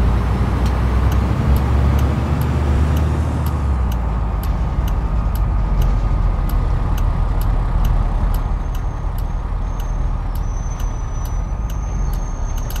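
A turn signal ticks steadily.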